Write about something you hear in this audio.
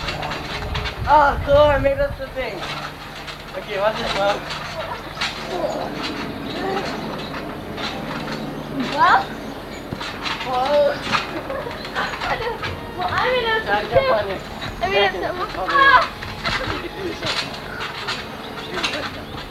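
Young girls shout and laugh excitedly, close by.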